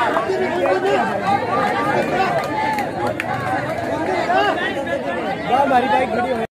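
A large outdoor crowd of young people shouts and cheers loudly.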